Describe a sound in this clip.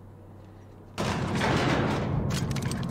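A lift rumbles into motion.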